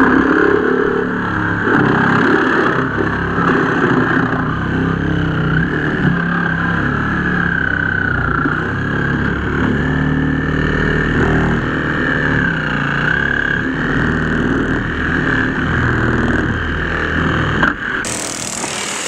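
A power rescue tool whines steadily and cuts through car metal.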